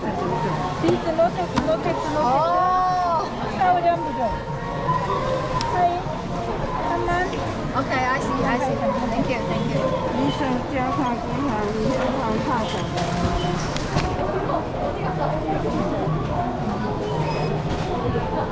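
A barcode scanner beeps at a checkout.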